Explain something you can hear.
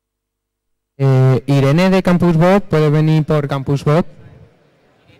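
A young man speaks loudly into a microphone.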